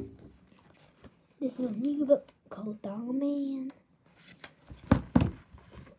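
Book pages flip and rustle.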